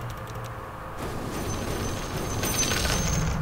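A burst of magical spell effects crackles and hums.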